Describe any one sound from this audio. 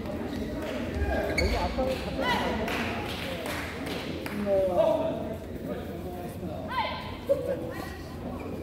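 Sports shoes squeak sharply on the court floor.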